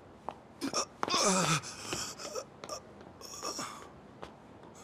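A man cries out in shock.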